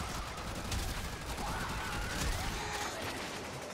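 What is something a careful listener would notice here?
Energy blasts crackle and explode.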